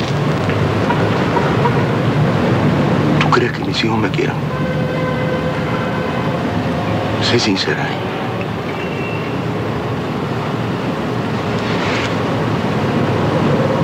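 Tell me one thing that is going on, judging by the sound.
A man speaks quietly and earnestly up close.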